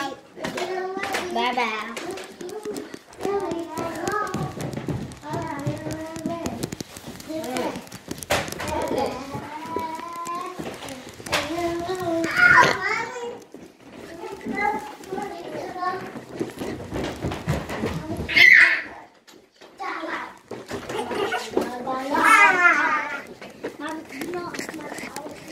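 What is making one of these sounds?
A child talks excitedly close by.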